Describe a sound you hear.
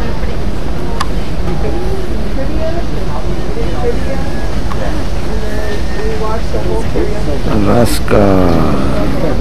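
A gull calls over water.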